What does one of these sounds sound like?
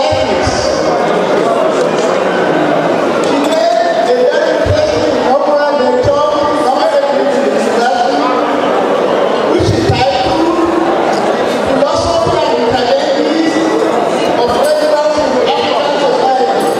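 An elderly man speaks steadily into a microphone, heard through a loudspeaker in a large room.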